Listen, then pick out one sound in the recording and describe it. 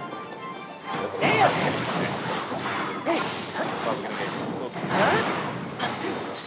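Swords slash and clang in a noisy battle.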